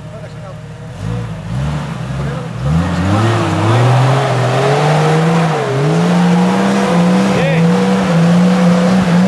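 An off-road vehicle's engine revs hard as it climbs a steep slope.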